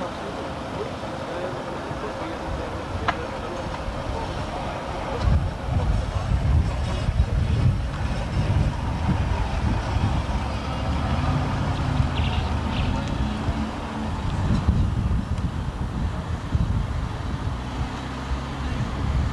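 A car engine rumbles low as the car rolls slowly over grass.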